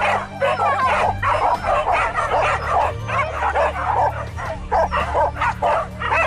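Several dogs bark and yelp excitedly close by, over and over.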